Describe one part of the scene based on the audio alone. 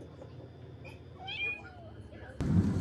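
A cat meows close by.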